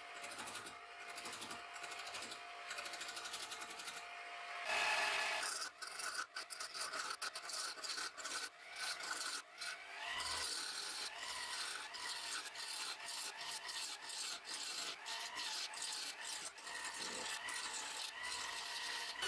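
A wood lathe hums as it spins steadily.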